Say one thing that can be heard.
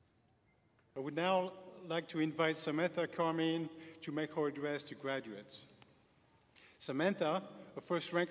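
A man speaks slowly into a microphone in a large hall.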